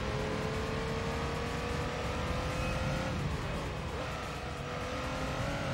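A racing car engine whines at high speed, then drops in pitch as the car slows, and climbs again.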